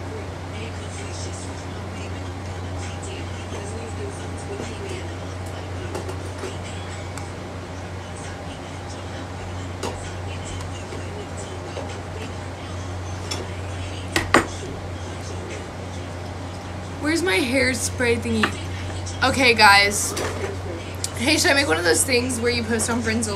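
A young woman talks casually and close by, heard through a phone microphone.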